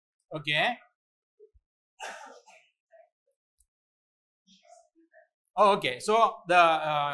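A man speaks calmly and clearly into a microphone, pausing between phrases.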